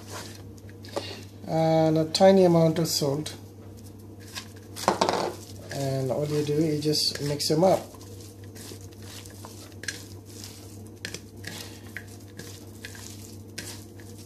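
Hands toss and squeeze a salad in a plate with soft, wet rustling.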